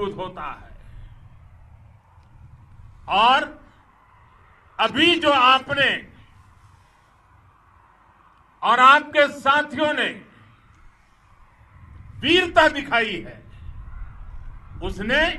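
An elderly man speaks forcefully through a microphone, in short bursts with pauses.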